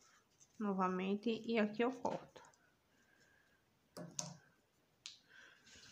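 Scissors snip a thread.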